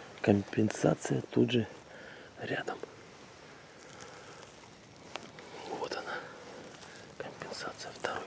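Footsteps crunch on dry pine needles.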